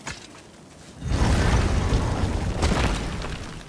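A heavy stone door grinds open with a deep rumble.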